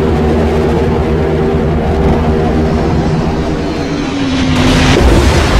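Propeller plane engines drone steadily overhead.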